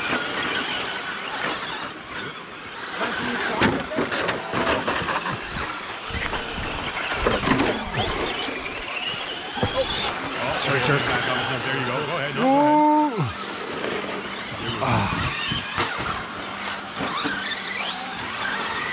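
Men talk casually close by.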